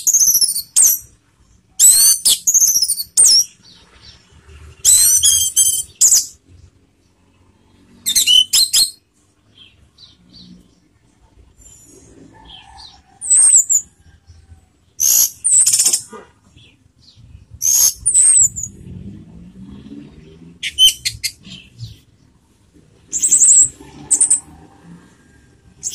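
A bird sings close by in loud, shrill, whistling bursts.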